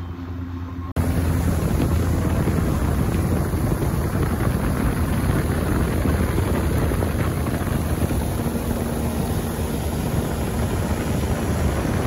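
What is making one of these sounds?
Water rushes and splashes beside a speeding boat.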